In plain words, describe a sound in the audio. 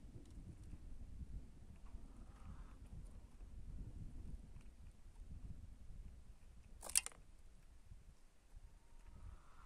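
A small bird pecks and cracks seeds with soft clicks.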